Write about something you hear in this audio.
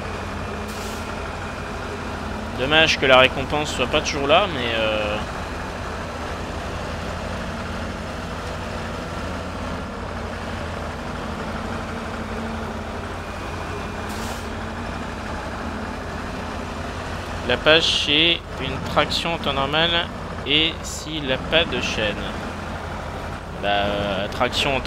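A truck engine rumbles steadily as the truck crawls over rough ground.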